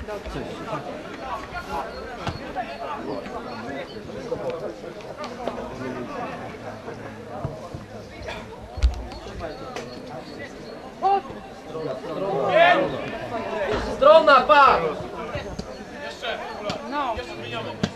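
Young men shout to each other outdoors in the distance.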